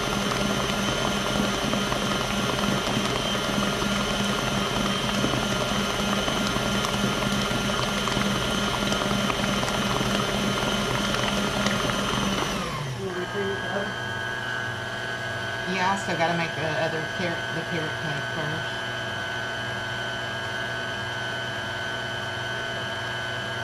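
An electric stand mixer whirs steadily as it beats, then shifts down to a slower, quieter hum.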